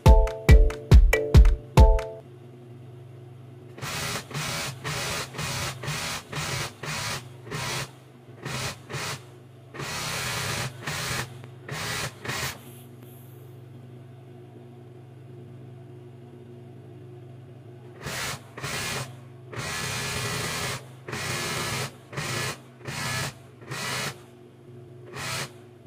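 A sewing machine motor hums steadily.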